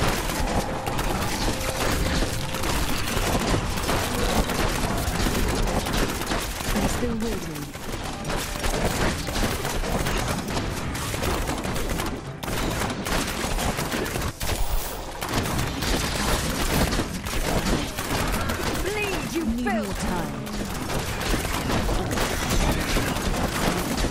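Fiery explosions burst in a video game battle.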